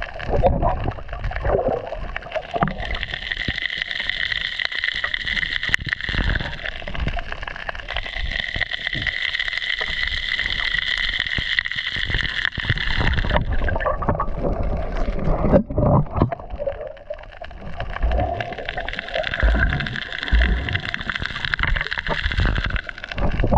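Bubbles rumble and gurgle as a diver breathes out underwater.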